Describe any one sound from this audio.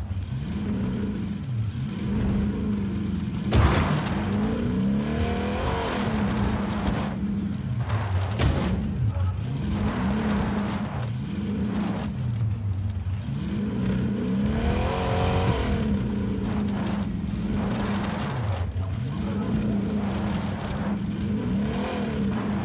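Big tyres skid and churn through dirt.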